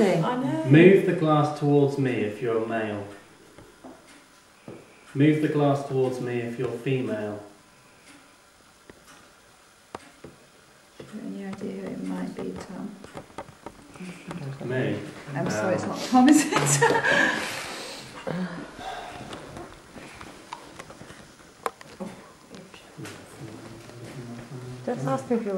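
A glass slides and knocks on a wooden table.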